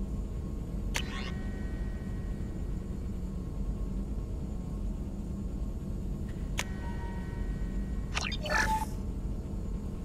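Short electronic menu beeps chime.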